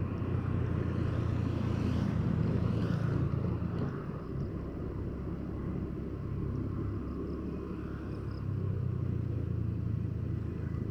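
A motor scooter rides ahead on a wet road.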